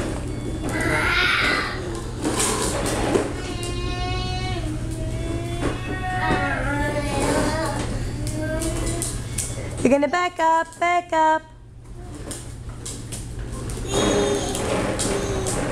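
Plastic wheels of a ride-on toy rumble over a concrete floor.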